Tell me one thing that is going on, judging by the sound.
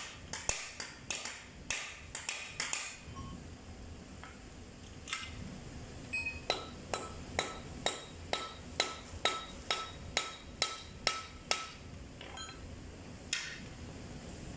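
Metal parts clank as they are handled.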